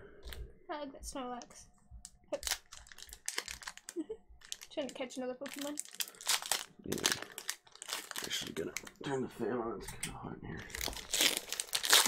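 Card packs crinkle and rustle as they are handled.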